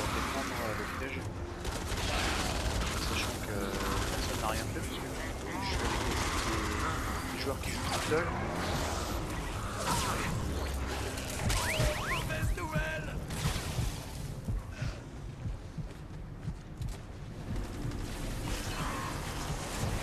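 Footsteps run across the ground in a game.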